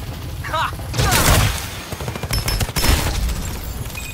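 Gunshots fire in a rapid burst.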